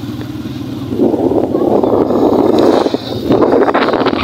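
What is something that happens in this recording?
A motorcycle passes close by.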